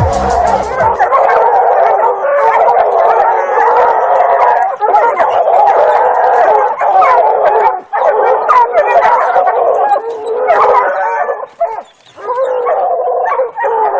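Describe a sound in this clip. Monkeys shriek and chatter excitedly.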